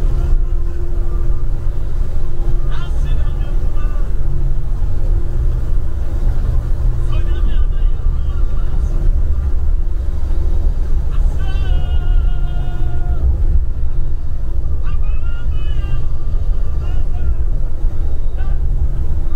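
Tyres rumble and crunch over a rough dirt road.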